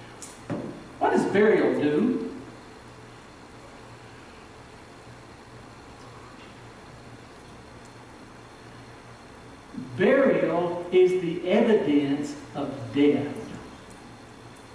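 A middle-aged man speaks with emphasis through a microphone.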